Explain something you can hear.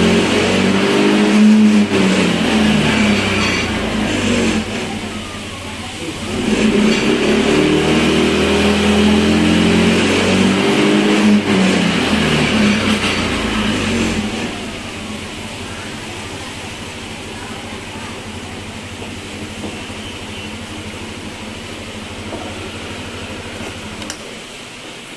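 A scooter engine idles with a low, steady hum.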